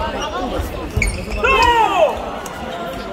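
Shoes squeak sharply on a wooden court floor.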